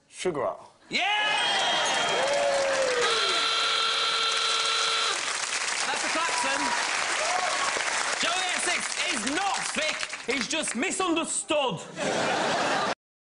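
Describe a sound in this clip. A studio audience claps and cheers.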